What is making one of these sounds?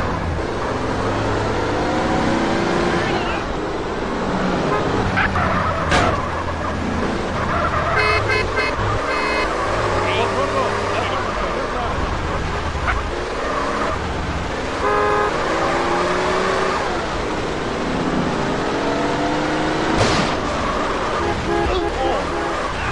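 A car engine revs up and down as a car drives.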